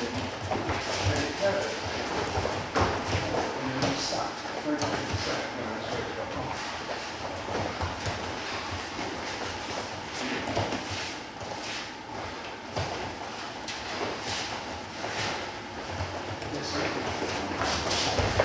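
Bare feet shuffle and thump on a padded mat in a large echoing hall.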